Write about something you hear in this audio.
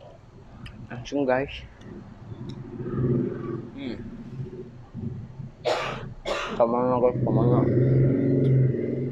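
A young man talks briefly with animation close to a microphone.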